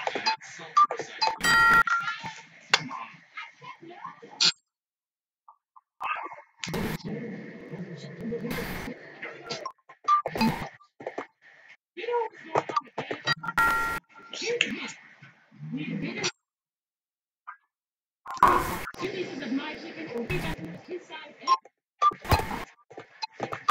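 Electronic game sound effects chime and beep.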